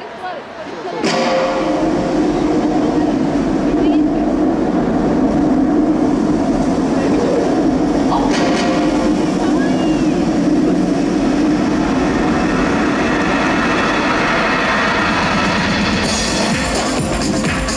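Music plays loudly over loudspeakers in a large echoing hall.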